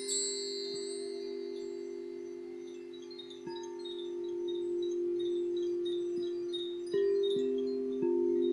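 Singing bowls ring with long, steady humming tones.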